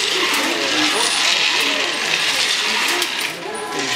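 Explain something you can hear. A wooden lottery drum rattles as it is turned by hand.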